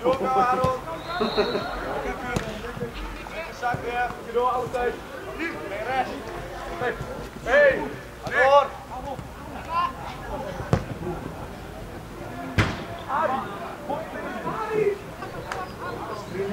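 Young male players shout to each other across an open outdoor pitch.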